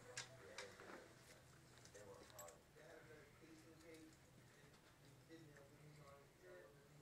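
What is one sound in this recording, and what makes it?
Dog claws tap and scuffle on a carpeted floor.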